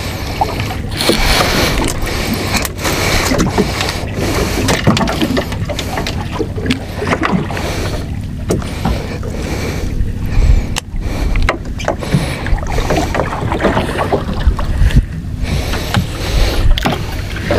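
Water laps and splashes against a small boat's hull.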